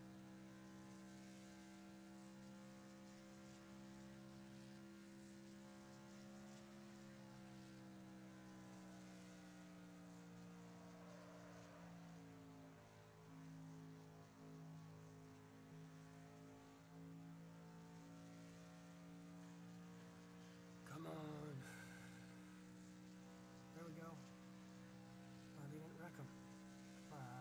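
A race car engine drones steadily at high speed, dipping slightly through a long turn.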